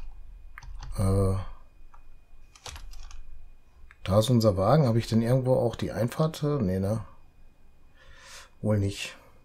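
A man talks calmly into a nearby microphone, in bursts with pauses.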